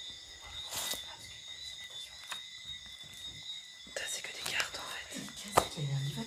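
Papers rustle as pages are turned by hand.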